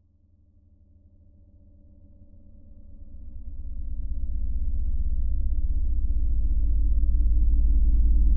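A low electrical hum buzzes and steadily grows louder.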